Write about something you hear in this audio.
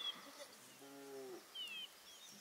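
A goat bleats nearby.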